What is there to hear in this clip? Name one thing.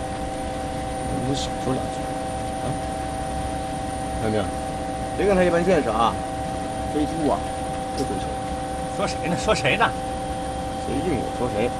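A man speaks calmly over a headset radio.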